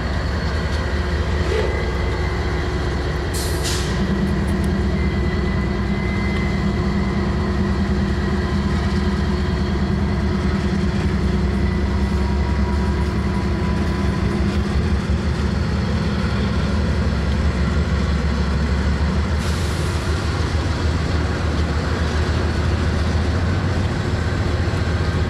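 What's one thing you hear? A diesel locomotive engine rumbles loudly and steadily nearby.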